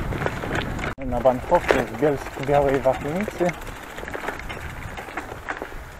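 Bicycle tyres crunch over gravel.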